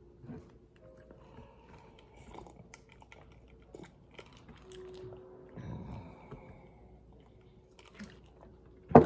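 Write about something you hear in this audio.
A young man sips and swallows a drink.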